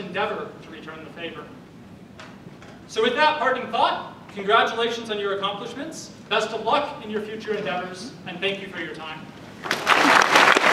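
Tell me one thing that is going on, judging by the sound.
A young man speaks through a microphone in an echoing hall.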